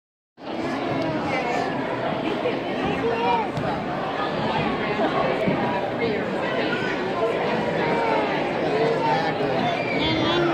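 A large audience chatters with many overlapping voices in an echoing hall.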